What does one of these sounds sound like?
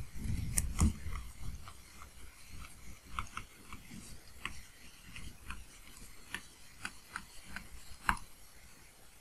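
A stylus taps and scratches softly on a tablet.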